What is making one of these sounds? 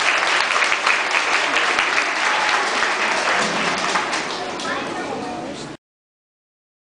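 A group of young children's voices sounds in a hall.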